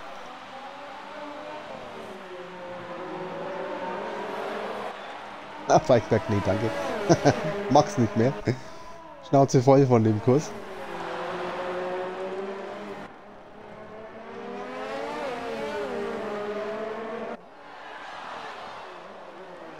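A racing car engine whines at high revs, rising and falling as it shifts gears.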